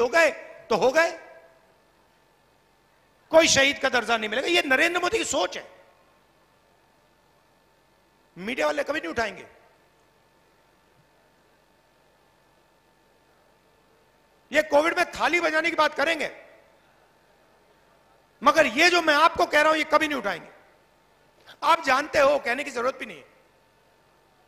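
A man speaks forcefully into a microphone over a loudspeaker, in bursts with long pauses.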